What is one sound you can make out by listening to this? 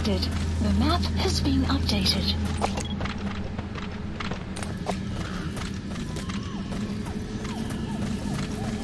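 Footsteps crunch softly on dry ground.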